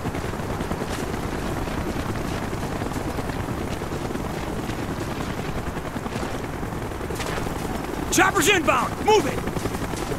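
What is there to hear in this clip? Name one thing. Footsteps crunch on sand as a soldier runs.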